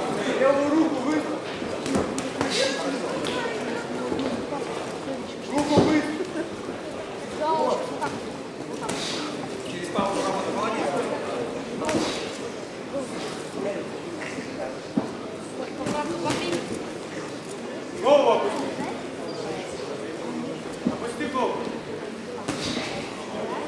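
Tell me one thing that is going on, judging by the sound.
Punches thud against gloves and bodies in sharp bursts.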